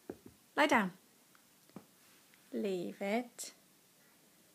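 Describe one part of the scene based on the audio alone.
A small dog gives short high yelps.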